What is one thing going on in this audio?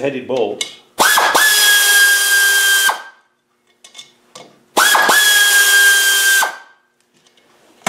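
An air ratchet whirs loudly in short bursts.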